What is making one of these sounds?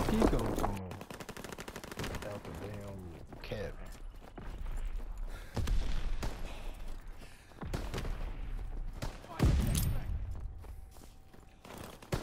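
Footsteps crunch through snow.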